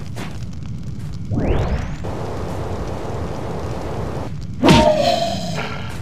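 Game characters fight, with magical whooshes and hits.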